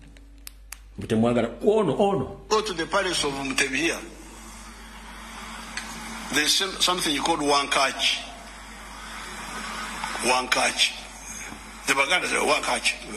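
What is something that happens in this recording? An elderly man speaks with animation through a small phone loudspeaker.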